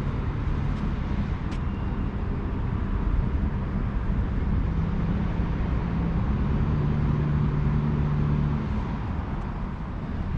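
A small motorboat hums steadily across the water.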